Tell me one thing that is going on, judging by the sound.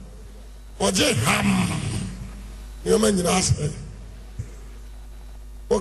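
A man preaches loudly into a microphone, heard through loudspeakers.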